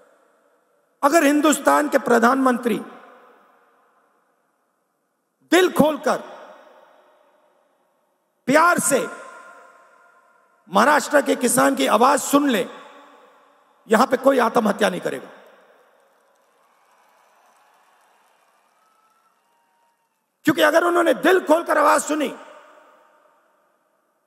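A man speaks forcefully into a microphone over loudspeakers, in short bursts with echoing pauses.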